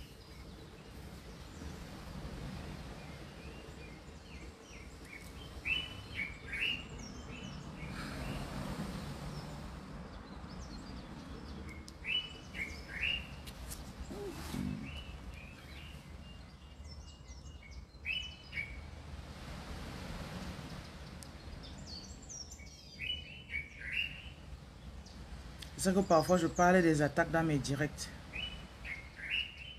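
A woman speaks softly and close by.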